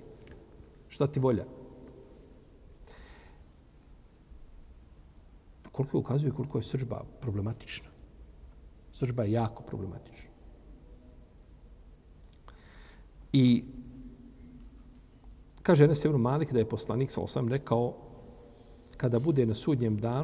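An elderly man speaks calmly into a close microphone, in short bursts with pauses.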